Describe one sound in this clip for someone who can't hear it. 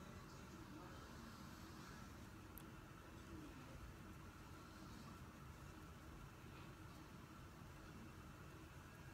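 A baby coos softly close by.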